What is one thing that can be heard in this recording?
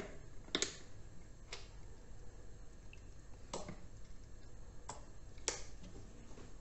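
A squeeze bottle squirts and splutters.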